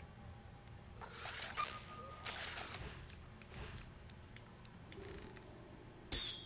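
Electronic game effects whoosh and zap.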